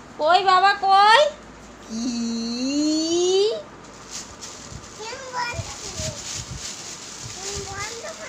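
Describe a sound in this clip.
A woman calls out in a high, playful voice close by.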